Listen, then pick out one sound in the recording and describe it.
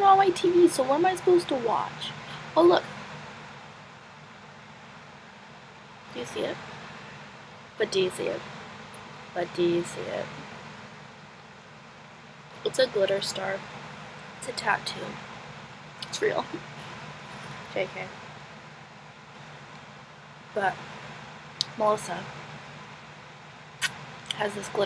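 A young woman talks casually and close to the microphone, in short bursts with pauses.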